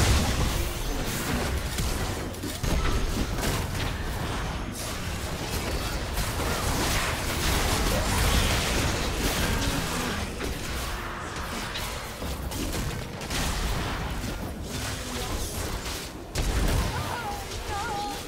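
Game spell effects whoosh, crackle and burst in quick succession.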